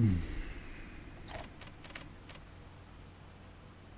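A soft menu blip sounds as a selection moves.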